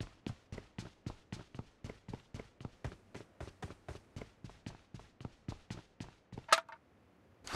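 Footsteps run on a stone floor.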